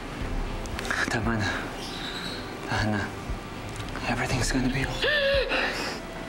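A young man speaks softly and pleadingly up close.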